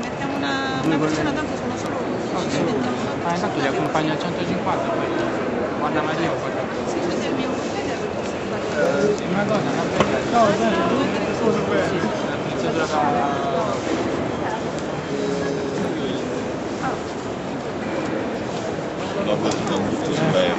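Several men and a woman talk over one another nearby.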